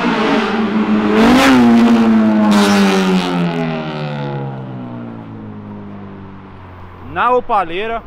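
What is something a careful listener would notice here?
A car engine roars past and its pitch drops as it moves away.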